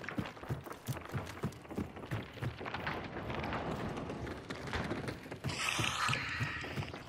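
Footsteps thud across wooden boards.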